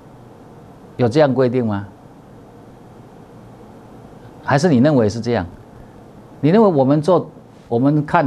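A middle-aged man speaks with animation into a close microphone, in short bursts.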